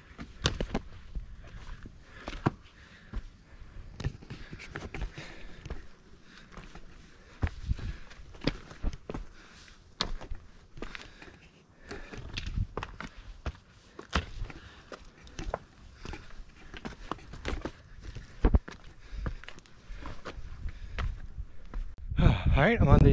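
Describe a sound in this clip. Footsteps crunch on a rocky forest trail.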